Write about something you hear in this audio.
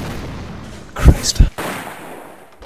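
A musket fires nearby with a sharp crack that echoes away.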